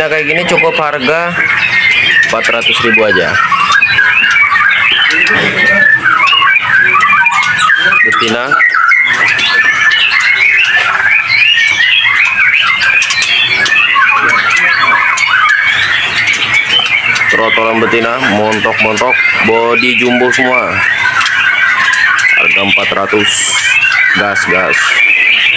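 Many small caged birds chirp and twitter busily and close by.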